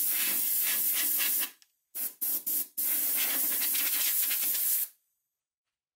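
Compressed air hisses loudly from an air nozzle in short bursts.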